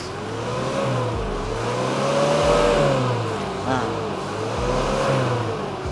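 An SUV engine idles nearby.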